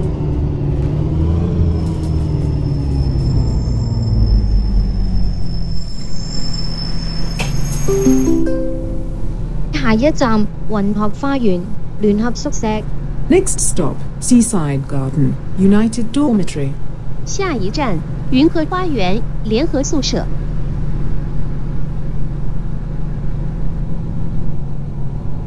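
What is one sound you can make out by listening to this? A bus engine rumbles and revs, then idles steadily.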